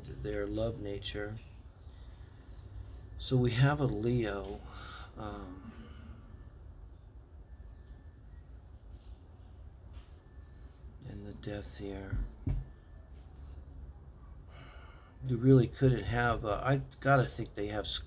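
An older man talks calmly and closely, pausing now and then.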